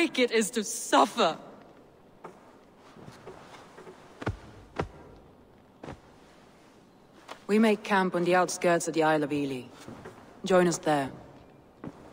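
A young woman speaks calmly and firmly, close by.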